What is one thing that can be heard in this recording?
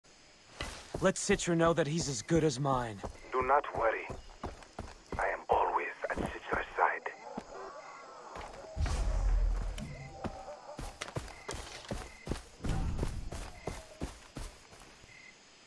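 Footsteps tread steadily over grass and gravel.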